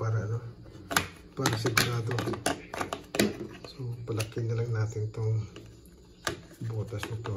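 A plastic trap clicks and snaps as hands work it.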